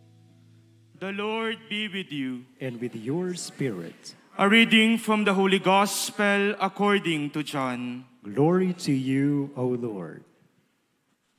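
A young man chants in a clear voice through a microphone.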